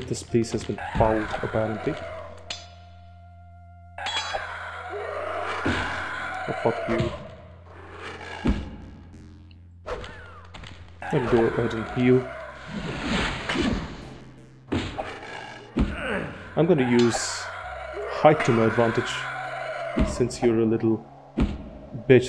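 A sword swishes and clangs against a skeleton's shield.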